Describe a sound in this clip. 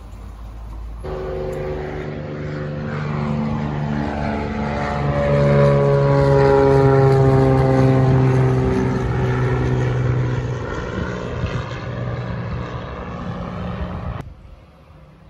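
A small propeller plane drones overhead, growing louder and then dropping in pitch as it passes.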